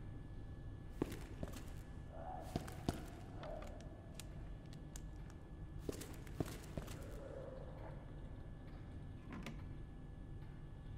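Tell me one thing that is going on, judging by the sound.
Footsteps tread on a hard floor.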